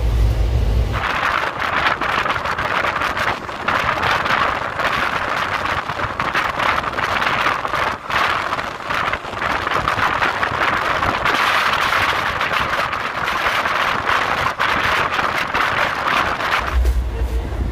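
A train rumbles and clatters along the tracks at speed.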